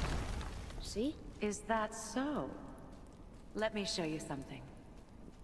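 A boy speaks with animation.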